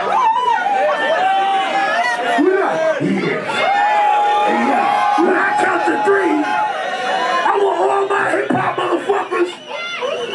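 A crowd cheers and shouts along in a packed echoing room.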